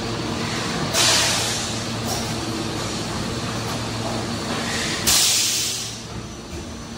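Compressed air hisses in loud bursts as a machine cycles.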